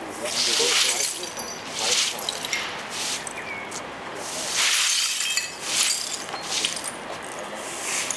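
A broom sweeps broken glass across wet asphalt, with scraping and clinking.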